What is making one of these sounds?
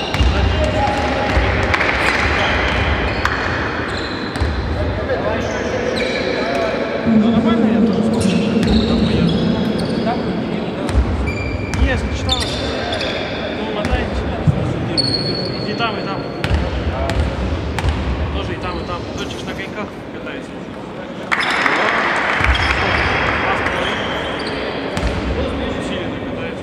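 Sneakers squeak on the hard court.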